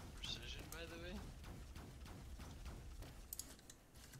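A laser gun fires short zapping shots.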